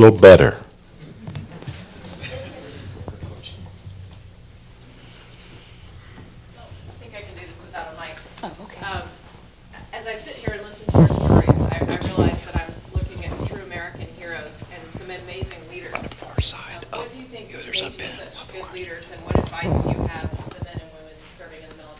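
An elderly man talks more quietly, heard from farther away.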